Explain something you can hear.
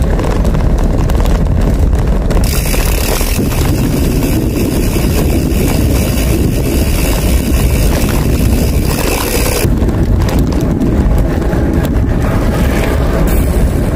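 Wind rumbles over a microphone outdoors.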